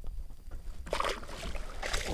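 A fish splashes into lake water.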